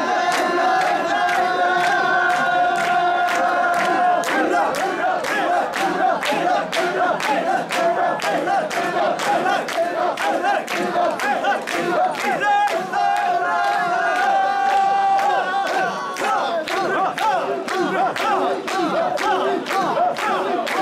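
Hands clap in a steady beat among a crowd.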